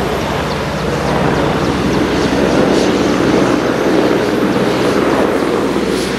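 A jet airliner's engines roar loudly close by.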